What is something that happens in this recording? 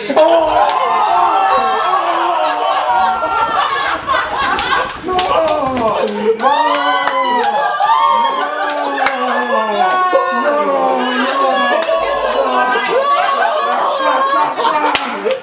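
Young men laugh and shout with excitement.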